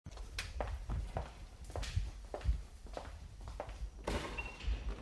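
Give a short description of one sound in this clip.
Footsteps echo on a hard floor at a steady walking pace.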